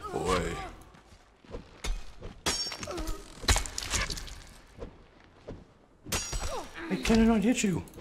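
A heavy club strikes bodies with dull thuds.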